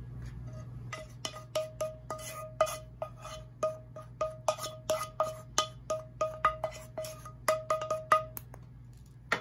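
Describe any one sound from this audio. A wooden spoon knocks against a ringing bowl.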